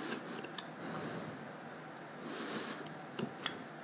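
A utility knife blade scrapes and cuts through a stiff cap brim.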